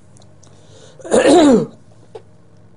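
An elderly man blows his nose loudly into a tissue.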